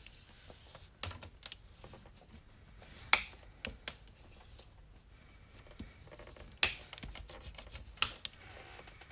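Fingers tap and scrape against paper on a table.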